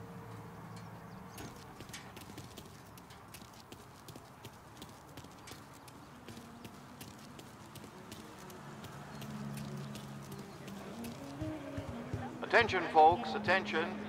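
Footsteps tap quickly on pavement.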